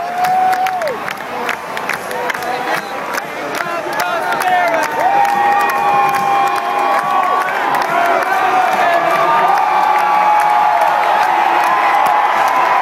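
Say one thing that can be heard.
A huge stadium crowd cheers and roars.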